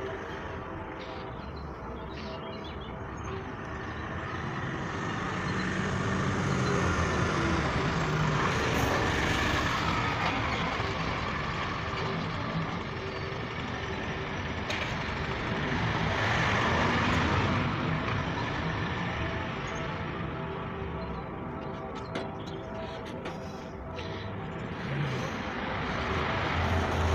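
Construction machinery hums and rumbles steadily in the distance.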